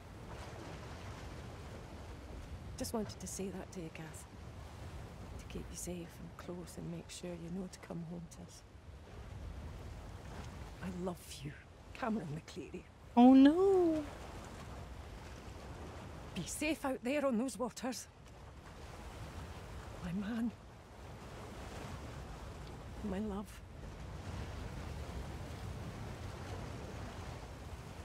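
Rough sea waves churn and crash steadily.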